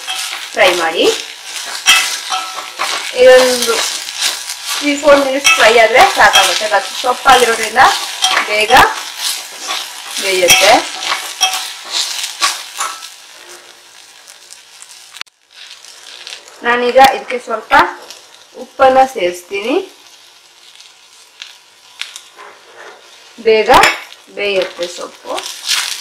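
A metal spoon scrapes and clinks against a steel pot as leaves are stirred.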